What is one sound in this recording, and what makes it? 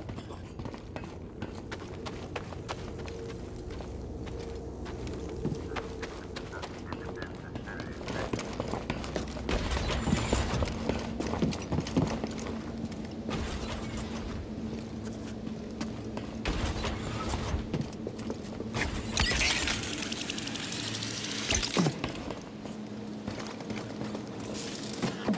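Footsteps run quickly on metal grating.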